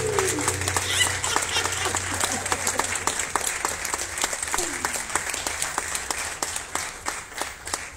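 An acoustic guitar is strummed in a steady rhythm.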